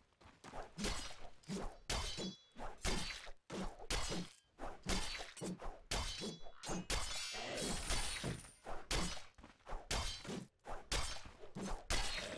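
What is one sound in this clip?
Heavy weapon blows land again and again in quick succession.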